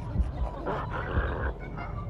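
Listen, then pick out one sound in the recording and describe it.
A chimpanzee screeches loudly nearby.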